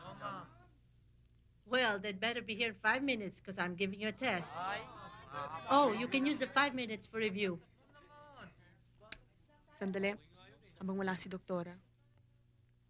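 A woman speaks clearly and with animation.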